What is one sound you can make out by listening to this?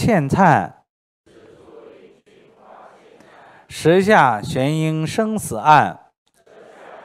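A middle-aged man reads aloud in a drawn-out, sing-song voice through a microphone.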